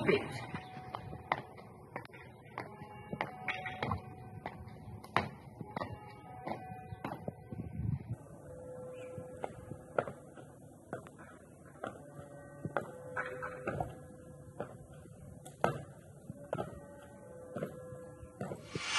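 Sneakers tap and scuff on stone paving.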